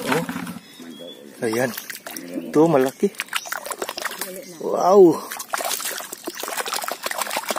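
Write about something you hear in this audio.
Water splashes and wet mud squelches as a hand digs in it.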